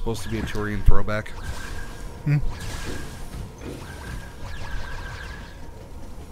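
Energy shots fire in quick bursts.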